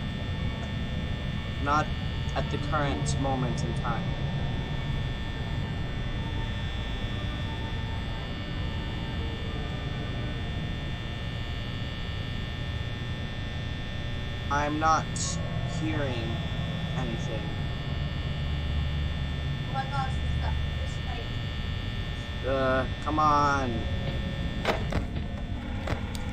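A desk fan hums steadily.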